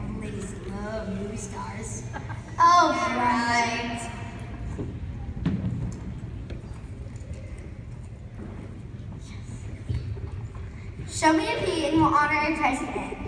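A young girl speaks into a microphone, heard through a loudspeaker in an echoing hall.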